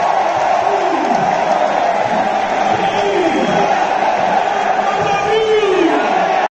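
A huge stadium crowd sings together, loud and echoing.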